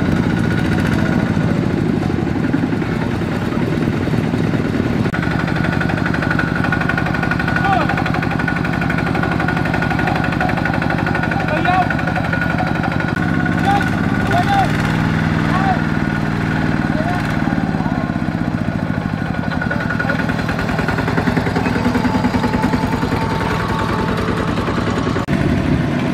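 A small tractor engine chugs loudly and steadily.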